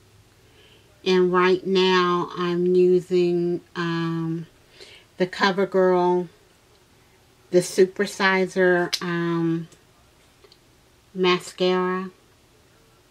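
A woman sings in short phrases close by.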